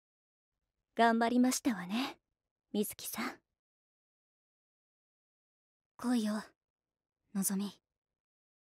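A young girl speaks softly and calmly in a lower voice.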